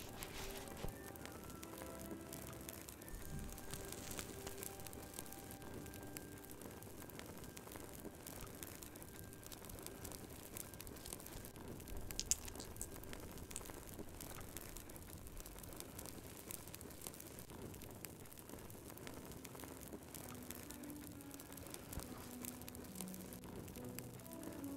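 A fire crackles and pops steadily.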